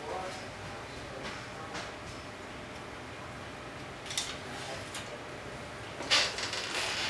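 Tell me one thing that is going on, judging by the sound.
Plastic clicks and rattles softly close by.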